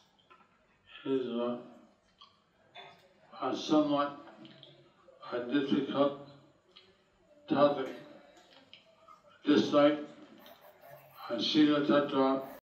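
A middle-aged man chants phrases into a microphone, with short pauses between them.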